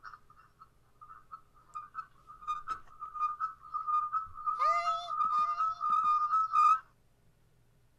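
A distorted, monstrous voice growls and shrieks over an online call.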